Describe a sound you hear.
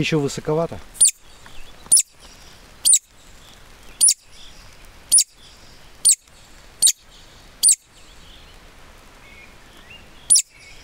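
A handheld bird call gives short, high chirps at a steady pace.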